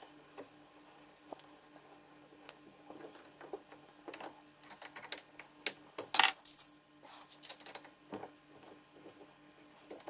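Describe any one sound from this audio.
Metal parts click and clack as an Allen key tightens a mount.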